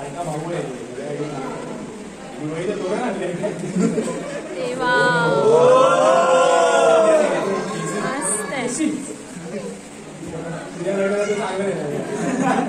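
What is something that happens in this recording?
Several men and women talk nearby in a room full of chatter.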